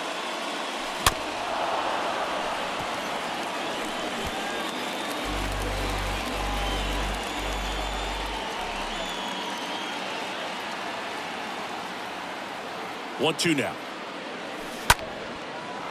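A wooden bat cracks against a baseball.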